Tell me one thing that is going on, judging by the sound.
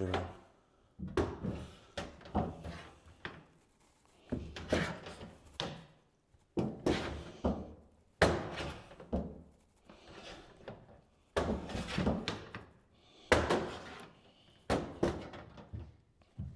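A hand tool taps and scrapes against a stiff sheet.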